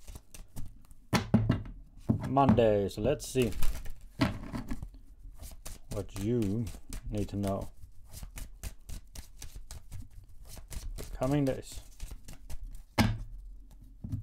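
Playing cards riffle and flick as they are shuffled.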